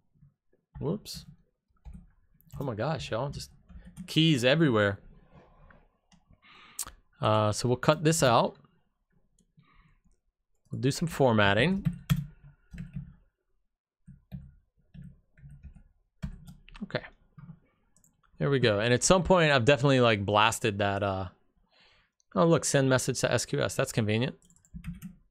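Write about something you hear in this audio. A man talks calmly and steadily, close to a microphone.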